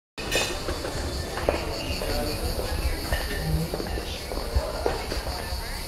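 Footsteps tap on a hard floor as people walk.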